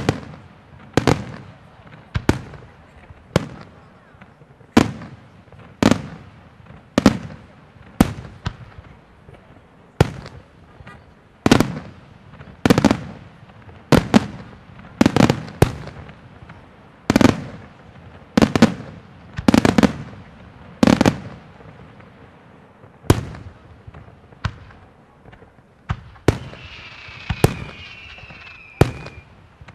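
Fireworks burst with loud booming bangs that echo away, one after another.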